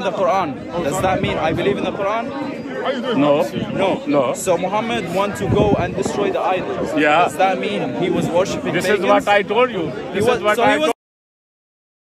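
An elderly man speaks, close by.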